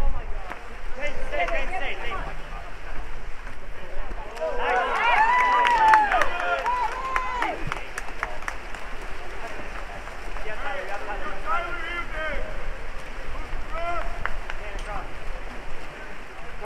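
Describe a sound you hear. Swimmers splash and churn the water.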